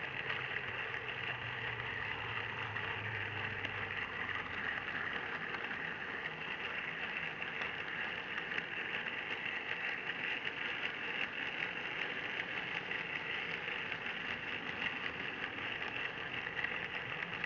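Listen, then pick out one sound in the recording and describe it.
A small model train motor whirs steadily close by.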